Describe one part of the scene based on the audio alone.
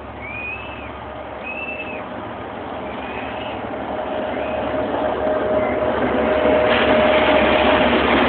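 A train's wheels clatter on the rails.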